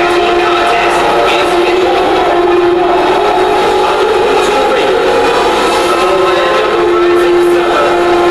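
Pyrotechnic jets hiss and burst.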